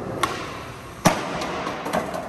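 A body slams onto a hard floor.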